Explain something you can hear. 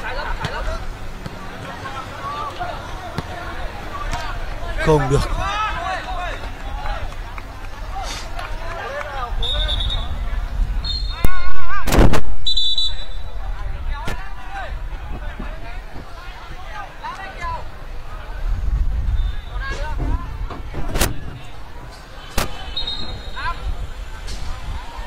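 Men shout to one another across an open outdoor pitch.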